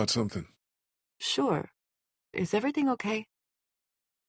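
A man speaks quietly and calmly.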